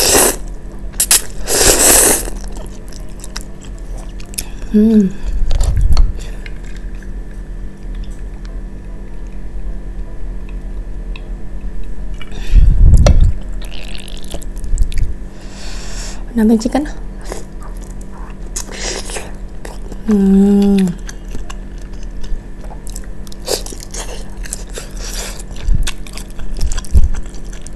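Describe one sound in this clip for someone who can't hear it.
A young woman chews food with soft, wet sounds close by.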